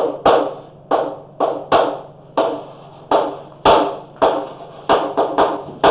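Chalk taps sharply against a blackboard, ringing out in an echoing room.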